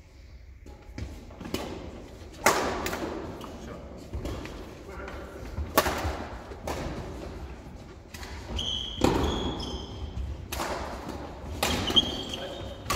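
Shuttlecocks are struck sharply with rackets, echoing in a large hall.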